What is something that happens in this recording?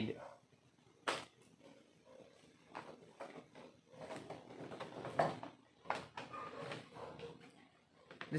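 A nylon bag rustles and crinkles as it is packed.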